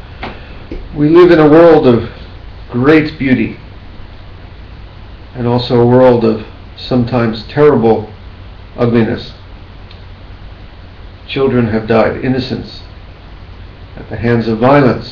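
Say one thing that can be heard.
A middle-aged man speaks calmly and slowly, close to a microphone.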